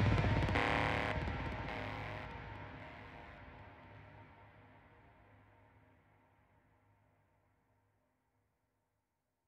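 Music plays through an amplifier and slowly fades away.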